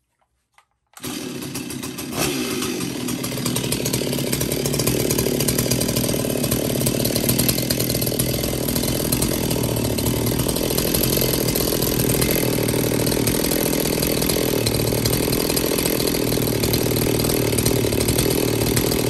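A chainsaw engine starts and runs steadily, loud and close.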